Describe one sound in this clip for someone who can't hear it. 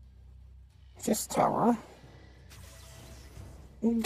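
A game card lands with a short whooshing chime.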